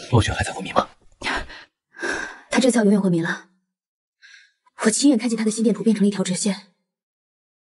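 A young man speaks quietly and seriously, close by.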